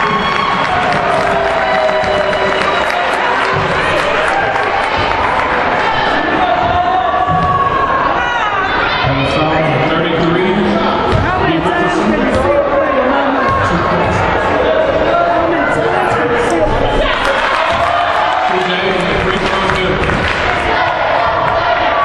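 A crowd chatters and cheers, echoing in a large hall.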